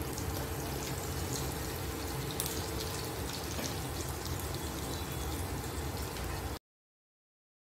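Meat patties sizzle and crackle in a hot frying pan.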